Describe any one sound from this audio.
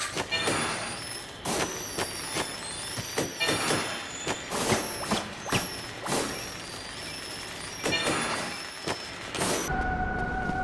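Metal blades clash and strike in sharp, repeated blows.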